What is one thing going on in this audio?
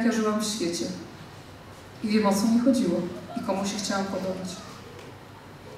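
A woman speaks through a microphone and loudspeakers in a large echoing hall.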